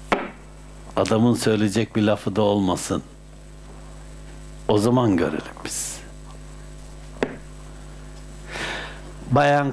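An elderly man speaks calmly and warmly into a nearby microphone.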